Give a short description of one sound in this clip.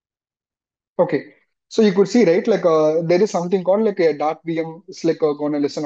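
A man speaks calmly into a microphone over an online call.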